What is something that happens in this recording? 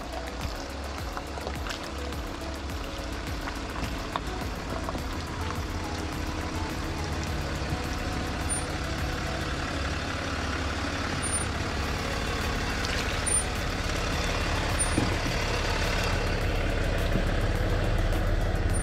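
An engine rumbles low and grows louder as a vehicle approaches.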